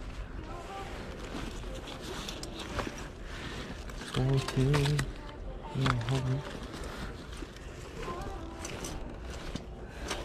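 Leather bags rustle and bump against each other.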